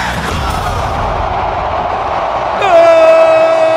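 A crowd cheers in a stadium.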